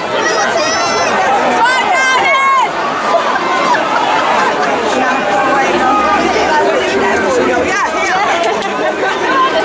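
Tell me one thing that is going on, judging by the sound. A dense crowd of men shouts and cheers loudly outdoors.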